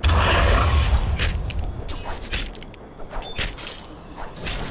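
Weapons clash in quick sharp hits.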